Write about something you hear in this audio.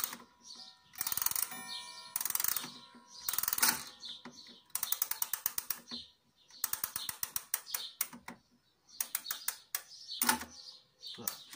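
A clock key ratchets with rapid clicks as the clock is wound.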